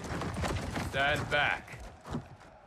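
A man speaks firmly and calmly.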